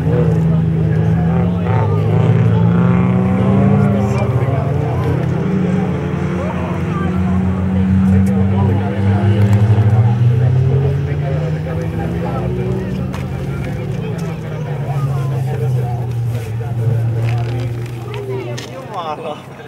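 Racing car engines roar and whine from a distance as cars speed around a track.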